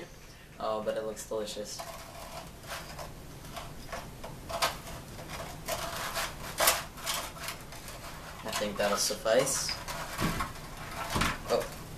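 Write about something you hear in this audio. A metal utensil scrapes and clinks against a metal pan.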